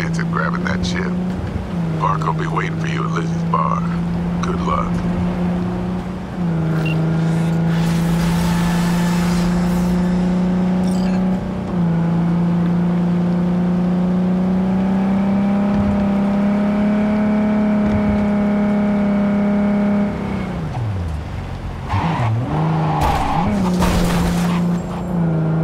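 A car engine drones steadily, its pitch stepping up and down as it shifts gears.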